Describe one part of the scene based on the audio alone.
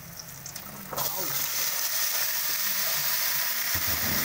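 Food is tipped into a hot pan and the sizzling suddenly grows louder.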